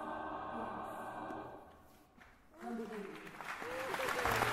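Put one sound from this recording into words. A man sings.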